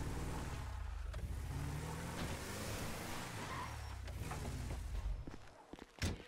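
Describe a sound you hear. A truck engine rumbles as the truck drives along and slows.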